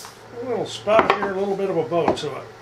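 A hammer taps on wood.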